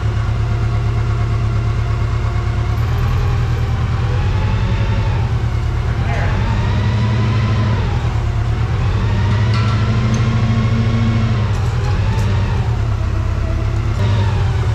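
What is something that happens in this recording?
A large diesel engine idles with a steady, low rumble.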